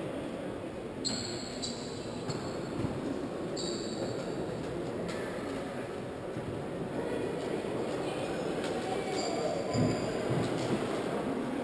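Players' shoes squeak on the court.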